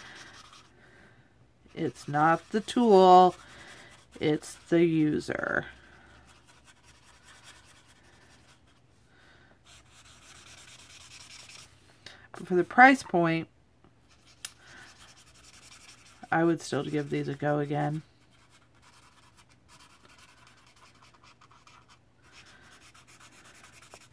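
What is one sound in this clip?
A marker scratches softly on paper.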